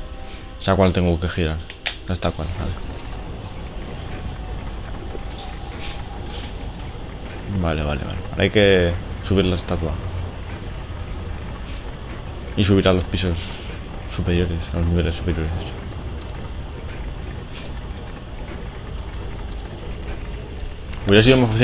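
A heavy stone wheel grinds as it turns.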